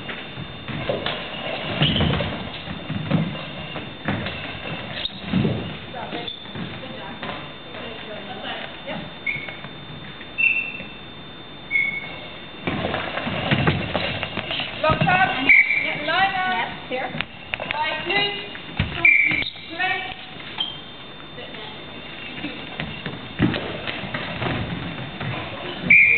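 A ball with bells inside jingles as it rolls across the floor of a large echoing hall.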